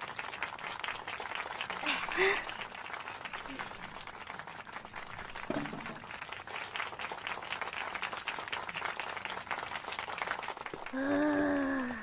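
A small string ensemble plays a piece of music.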